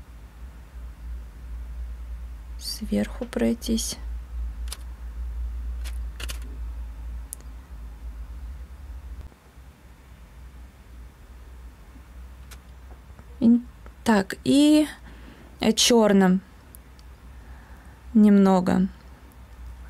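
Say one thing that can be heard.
A colored pencil scratches softly on paper.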